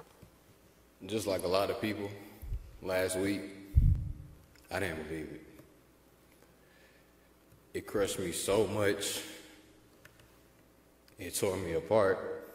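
A man speaks calmly into a microphone in a large echoing hall, with long pauses.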